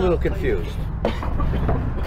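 A chess piece taps down on a board.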